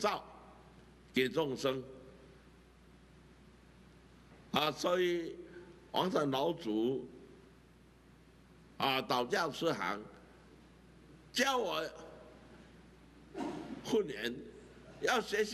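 An elderly man speaks with animation into a close microphone, in short bursts with pauses.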